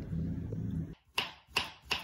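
A knife chops through a banana on a cutting board.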